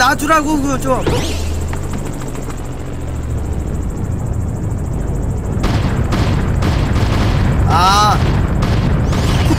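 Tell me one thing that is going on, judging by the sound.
Upbeat video game music plays steadily.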